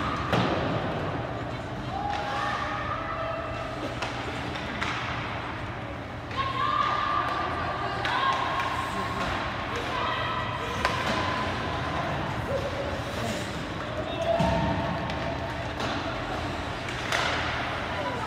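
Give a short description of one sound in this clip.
Hockey sticks clack against a puck now and then.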